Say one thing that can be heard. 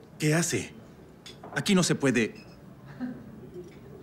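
A woman sips from a glass.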